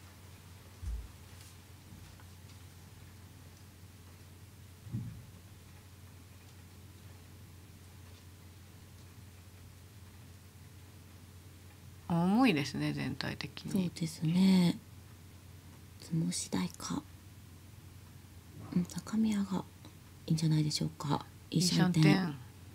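Mahjong tiles clack softly as they are placed on a table.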